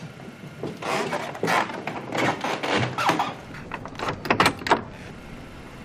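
A heavy wooden door creaks open and thuds shut.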